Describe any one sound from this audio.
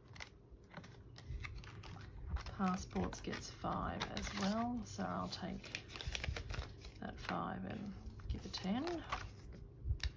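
Banknotes and paper rustle as they are handled close by.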